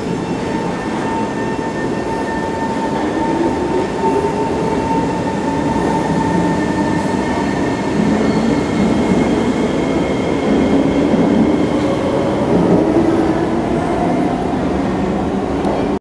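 Train motors whine, rising in pitch.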